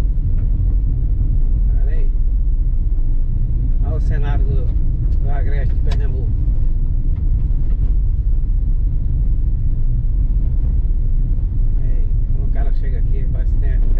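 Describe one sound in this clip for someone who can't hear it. A car rumbles steadily along a bumpy dirt road.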